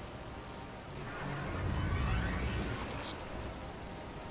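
A spaceship engine swells into a deep roaring whoosh.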